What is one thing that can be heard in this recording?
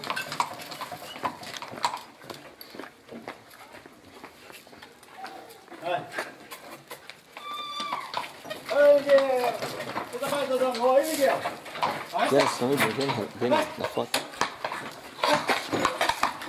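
Cart wheels rattle over stone.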